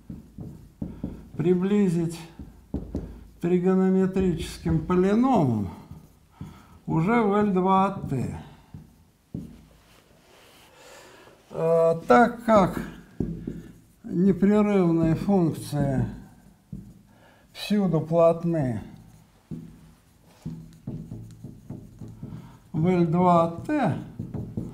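An elderly man speaks calmly and slowly.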